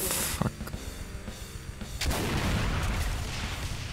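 A shotgun is pumped and reloaded with a metallic clack.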